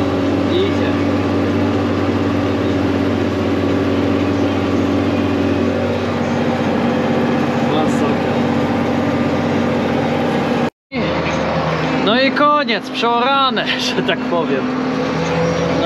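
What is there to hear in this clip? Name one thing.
A diesel tractor engine drones under load, heard from inside the cab, while pulling a cultivator.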